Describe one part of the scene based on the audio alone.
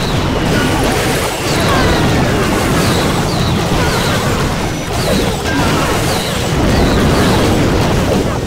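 Explosions and clashing battle effects from a video game crackle steadily.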